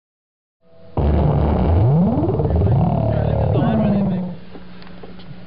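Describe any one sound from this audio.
A loudspeaker plays a loud buzzing tone that sweeps upward in pitch.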